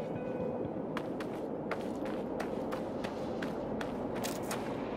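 Footsteps crunch steadily on loose ground.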